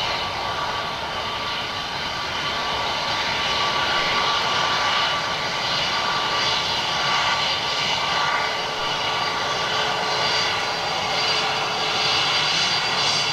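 A jet airliner's engines whine loudly and steadily as it taxis close by.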